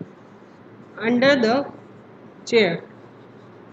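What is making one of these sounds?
A woman speaks calmly into a nearby microphone.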